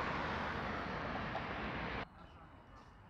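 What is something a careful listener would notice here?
Traffic hums steadily nearby.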